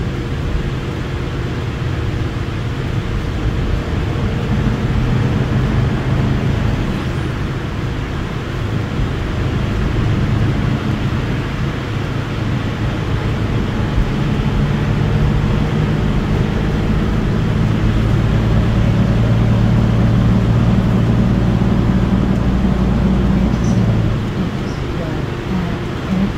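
A diesel-electric hybrid articulated bus hums and rumbles as it drives, heard from inside the cabin.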